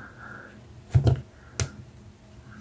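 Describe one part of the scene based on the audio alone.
A crimping tool squeezes and clicks shut.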